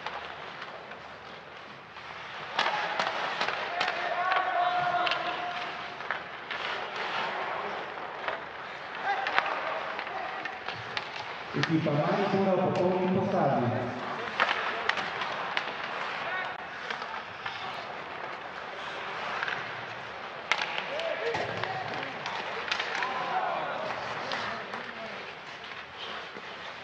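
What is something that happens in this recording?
Skates scrape and hiss on ice.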